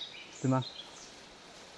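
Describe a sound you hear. A wooden log knocks against other logs.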